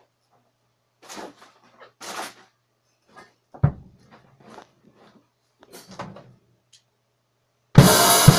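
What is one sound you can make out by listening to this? A drummer hits the drums and cymbals in short, uneven bursts, close by.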